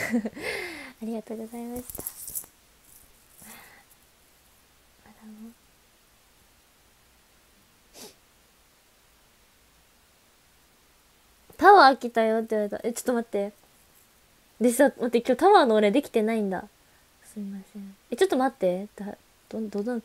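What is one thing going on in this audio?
A young woman talks close to a microphone with animation.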